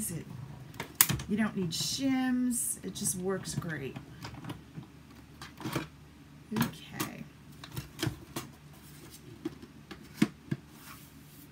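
Plastic parts click and snap as a small machine is opened and closed.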